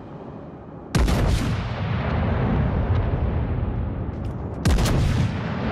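Heavy guns fire with loud booming blasts.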